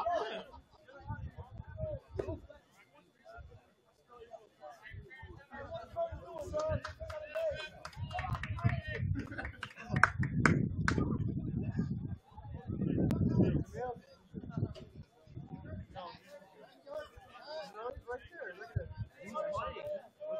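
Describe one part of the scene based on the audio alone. Young players shout and call out across an open field, some distance away.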